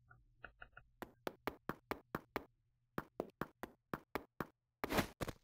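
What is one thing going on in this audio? A game character's footsteps patter quickly across a floor.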